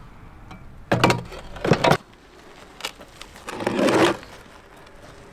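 A wheelbarrow clatters as it is moved.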